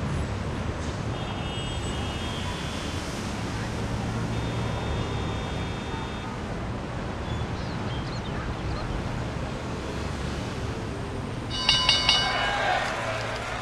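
Short electronic chimes ring out as game menus open and close.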